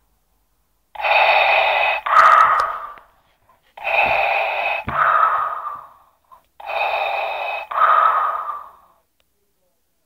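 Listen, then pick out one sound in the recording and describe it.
A plush toy plays loud, rasping mechanical breathing in slow, even bursts.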